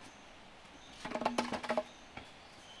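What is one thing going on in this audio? Bamboo poles knock and clatter together close by.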